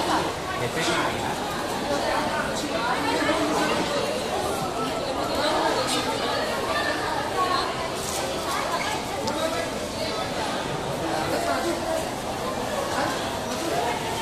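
A crowd of men and women chatter all around in an echoing hall.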